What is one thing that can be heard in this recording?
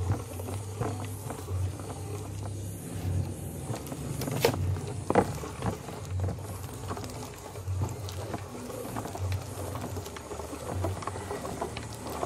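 Ground meat squelches as it is pushed out of a grinder.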